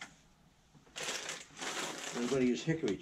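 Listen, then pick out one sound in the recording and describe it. Paper rustles and crinkles in a man's hands.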